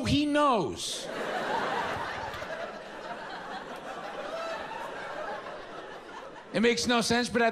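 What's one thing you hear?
An audience laughs in a large hall.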